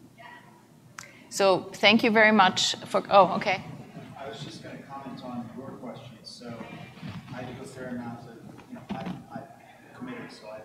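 A woman speaks into a microphone, heard over loudspeakers in a large room.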